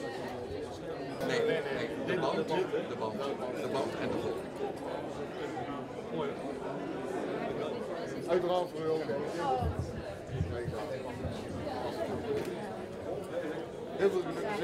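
A crowd of people chatter in a busy room.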